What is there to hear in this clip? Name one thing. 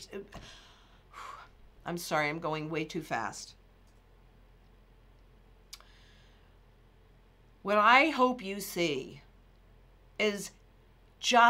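A middle-aged woman talks with animation into a close microphone, pausing now and then.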